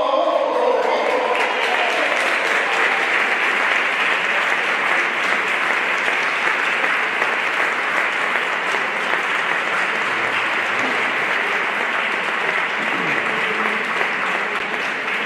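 A crowd claps and applauds loudly.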